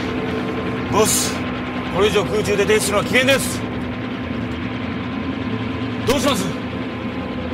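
A man shouts over a droning engine.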